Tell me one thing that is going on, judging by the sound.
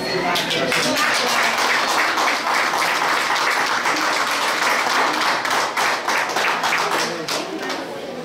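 A crowd applauds loudly indoors.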